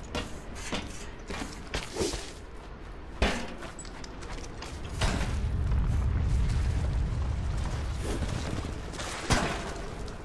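Metal mesh rattles and clanks as a climber scrambles up it.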